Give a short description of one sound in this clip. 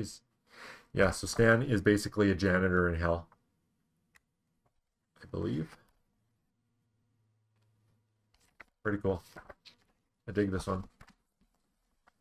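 Comic book pages rustle as they turn.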